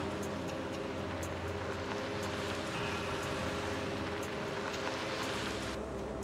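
Car engines rumble as vehicles drive slowly past.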